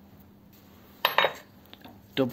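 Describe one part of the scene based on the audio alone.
A wrench clanks against a metal tool holder.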